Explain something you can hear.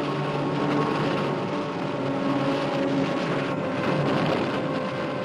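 Foaming water rushes and churns steadily.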